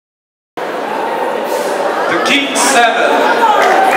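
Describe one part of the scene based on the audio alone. A young woman speaks through a microphone in a large echoing hall.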